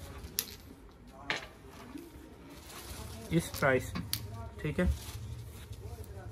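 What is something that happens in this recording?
Heavy fabric rustles as it is unfolded and smoothed.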